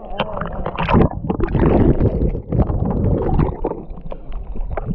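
Water gurgles and bubbles underwater.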